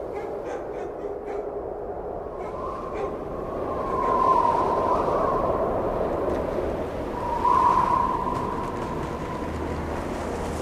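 Wind howls through trees, rising and falling.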